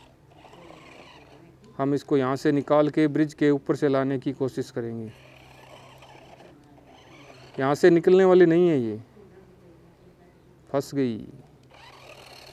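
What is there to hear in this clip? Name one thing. A small toy car's electric motor whirs as its plastic wheels roll over dirt.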